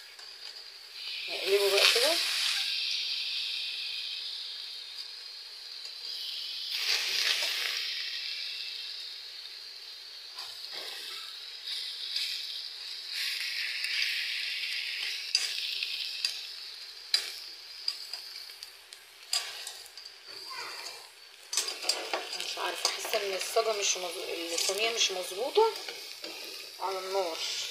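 Fish sizzle and crackle as they fry in hot oil.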